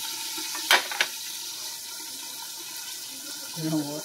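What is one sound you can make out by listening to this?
Metal tongs clatter onto a plate.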